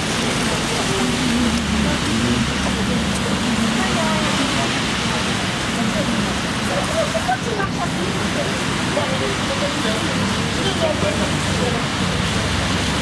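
Tram wheels squeal on the rails.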